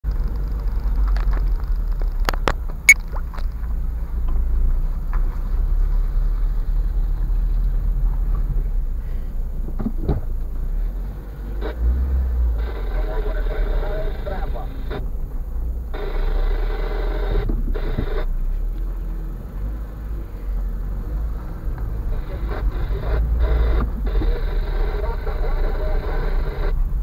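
Tyres crunch and rumble over a rough, bumpy road.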